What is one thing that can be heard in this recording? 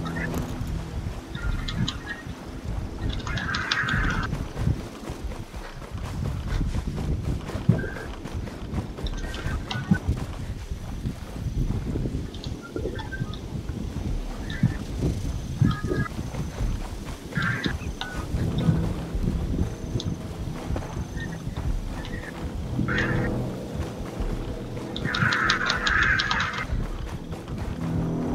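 Footsteps rustle through tall grass at a steady pace.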